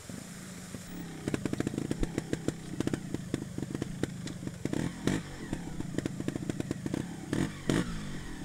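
A trials motorbike engine pops and blips loudly up close.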